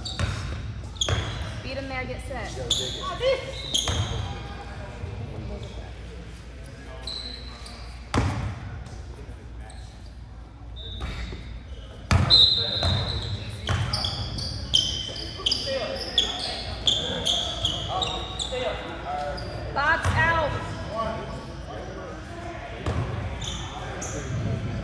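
Young people talk and call out in an echoing hall.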